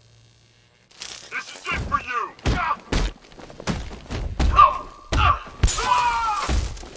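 Punches and kicks land in quick, heavy blows.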